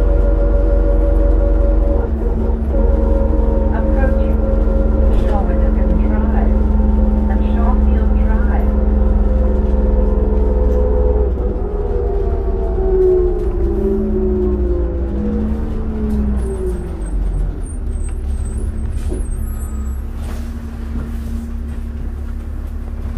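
A bus engine drones loudly from inside, then its pitch drops as it slows down.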